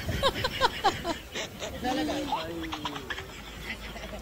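A man laughs close to a microphone.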